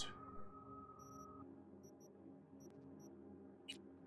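Soft electronic menu beeps chirp briefly, a few times.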